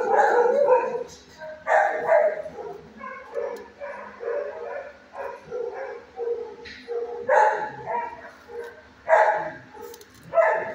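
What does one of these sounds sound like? A dog barks and whines close by in an echoing room.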